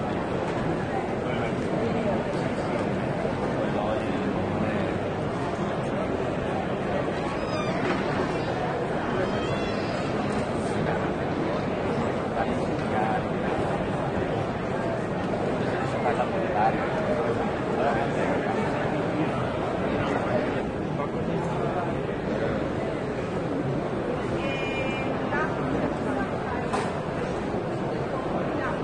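A crowd of people chatters steadily in a large, echoing hall.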